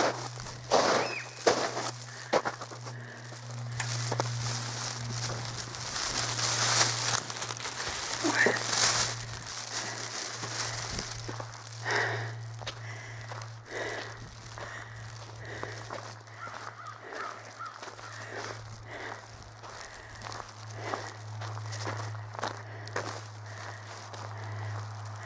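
Footsteps crunch on gravel and frozen ground.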